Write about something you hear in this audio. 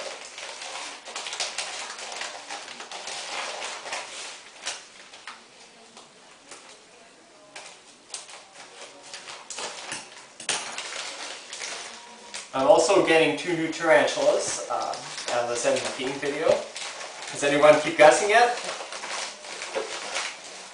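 A plastic bag rustles and crinkles close by.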